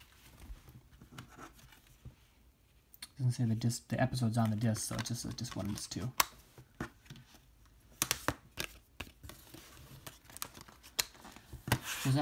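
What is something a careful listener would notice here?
A plastic disc case clicks and rattles as it is handled.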